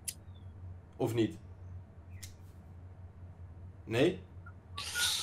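A young man speaks in short bursts over an online call.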